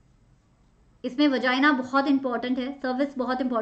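A young woman speaks calmly and clearly into a nearby microphone.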